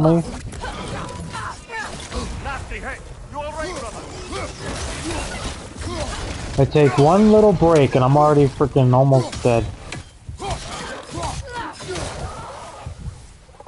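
Heavy weapon blows thud and clash in a fight.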